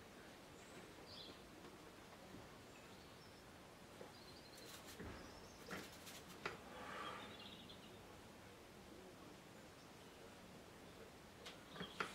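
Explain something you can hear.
A brush taps and scratches lightly on paper.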